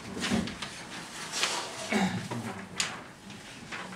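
Paper rustles as pages are handled.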